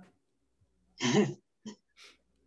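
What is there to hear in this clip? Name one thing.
An older woman laughs over an online call.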